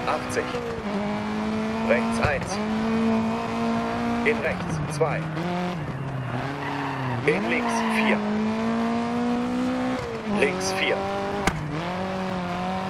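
A car engine revs high, rising and falling as gears change.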